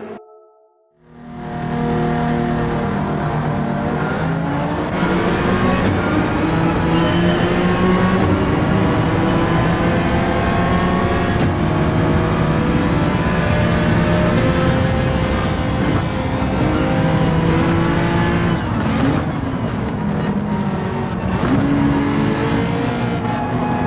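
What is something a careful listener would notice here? A racing car engine roars loudly, revving up and down through the gears.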